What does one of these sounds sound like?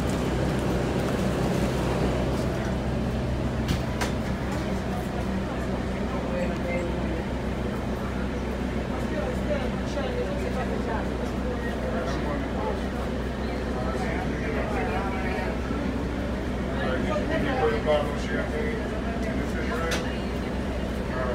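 A bus engine hums and rumbles steadily while the bus rolls along.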